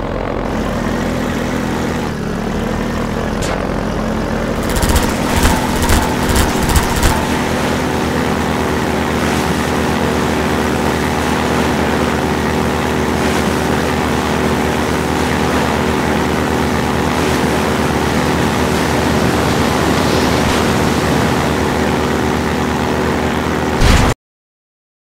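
An airboat engine drones steadily.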